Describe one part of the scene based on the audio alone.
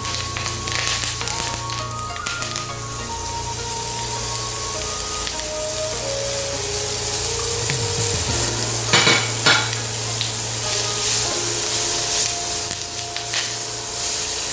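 A wooden spatula scrapes and stirs onions in a pan.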